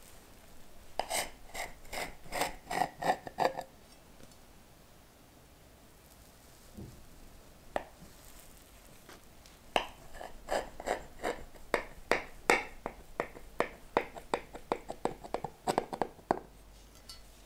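A knife crunches through a cake's crisp crust in quick bursts.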